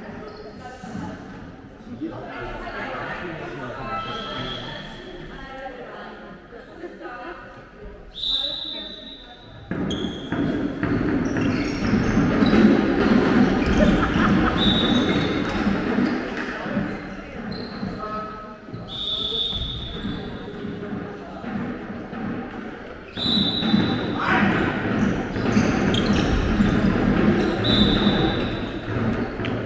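A handball bounces on the floor.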